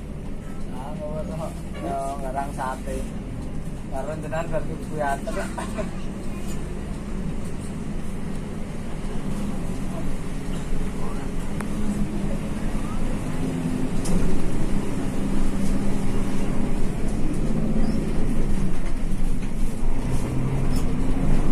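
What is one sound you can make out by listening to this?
A bus engine hums steadily from inside the cab.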